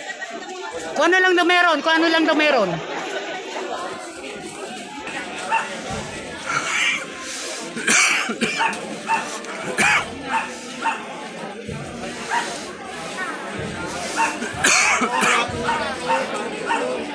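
A crowd chants in loud rhythmic shouts.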